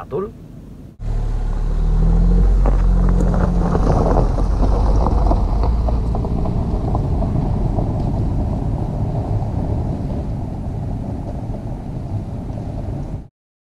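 A car engine roars as a car drives away and slowly fades.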